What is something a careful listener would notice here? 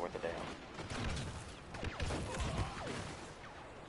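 Laser blasters fire in quick bursts.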